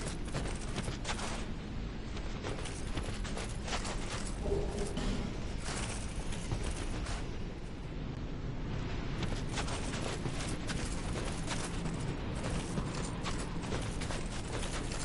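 Armoured footsteps crunch through snow.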